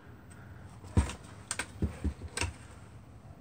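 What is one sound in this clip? Metal parts clank and rattle as they are handled.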